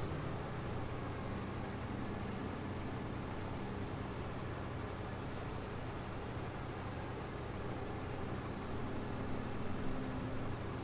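A truck engine drones steadily, rising a little toward the end.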